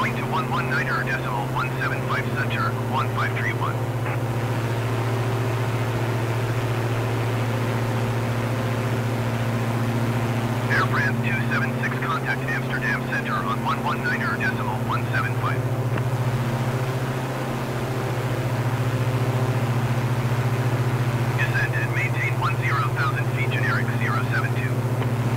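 A propeller plane's engines drone steadily.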